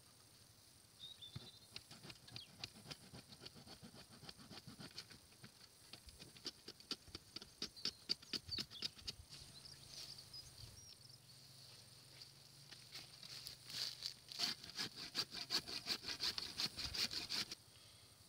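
A hand saw cuts through wood with rapid rasping strokes.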